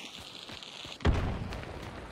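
A gunshot booms loudly.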